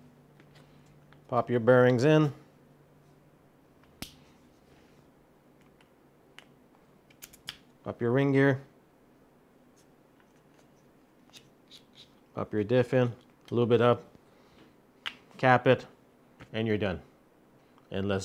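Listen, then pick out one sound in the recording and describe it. Small plastic parts click and rattle as they are handled.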